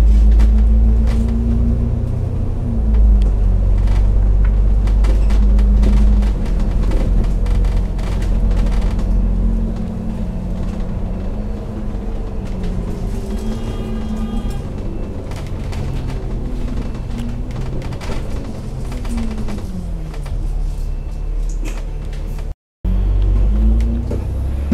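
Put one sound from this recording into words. A bus engine rumbles and whines, shifting pitch as the bus speeds up and slows down.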